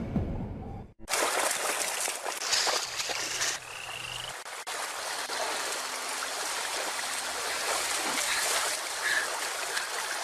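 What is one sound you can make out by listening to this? A stream of water rushes and splashes over rocks.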